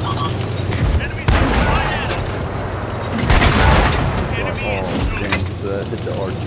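Loud cannon shots boom with a short echo.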